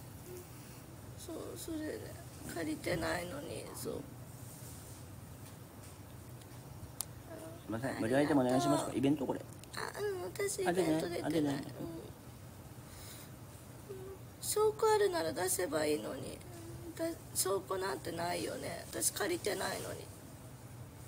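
A young woman talks casually close to the microphone.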